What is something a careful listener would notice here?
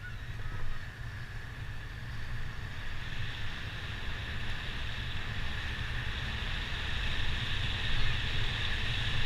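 A motorcycle engine hums steadily while riding along a street.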